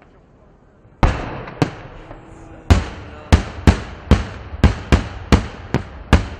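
Firework shells bang one after another outdoors, with echoes.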